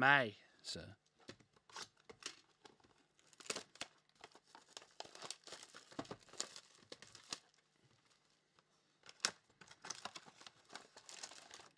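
Plastic wrap crinkles and rustles as hands tear it off a box.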